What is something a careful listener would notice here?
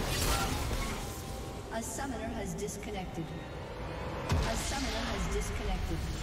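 Video game combat effects clash, zap and boom.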